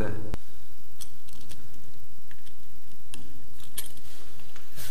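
A plastic wall socket clicks and scrapes as it is pressed into place.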